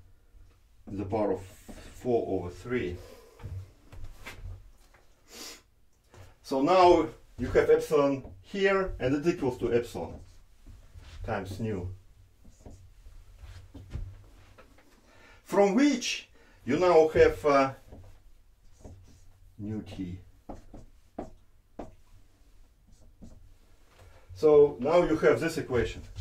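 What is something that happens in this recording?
A man lectures calmly, close by.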